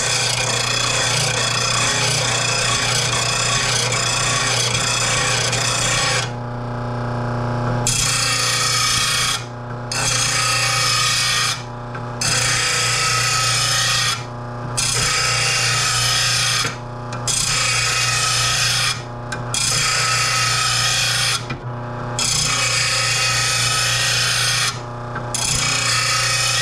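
A grinding wheel screeches against metal in repeated passes.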